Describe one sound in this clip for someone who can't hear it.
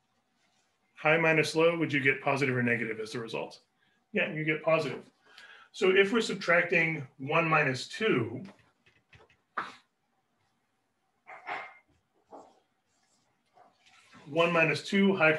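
A man speaks calmly and clearly into a nearby microphone, explaining at a steady pace.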